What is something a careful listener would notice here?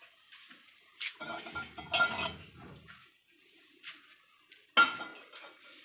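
Metal utensils clink and clatter close by.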